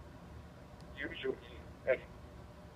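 A two-way radio loudspeaker gives out a short burst of sound.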